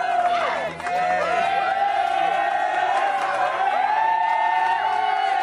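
People whistle shrilly among the cheering crowd.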